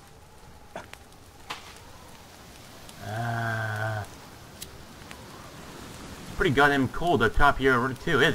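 A torch flame crackles softly.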